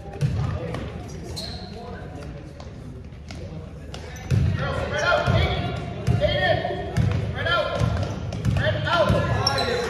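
A basketball bounces with dull thuds.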